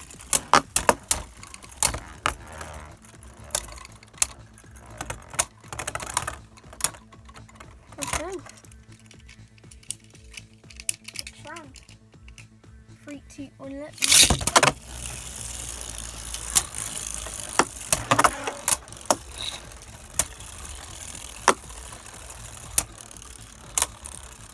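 Spinning tops whir and scrape across a plastic surface.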